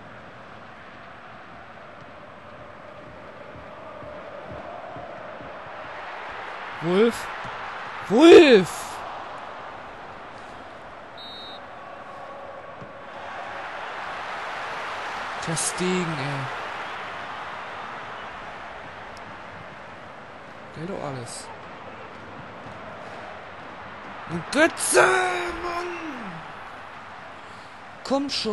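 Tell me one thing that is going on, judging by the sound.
A stadium crowd roars and murmurs steadily, swelling at times.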